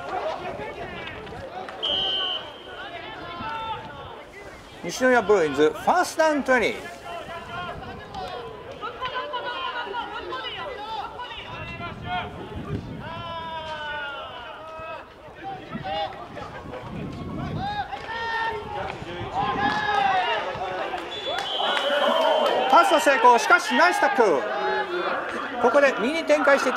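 Young men shout and cheer loudly from a sideline outdoors.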